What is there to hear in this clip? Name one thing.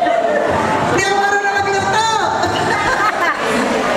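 An elderly woman laughs into a microphone.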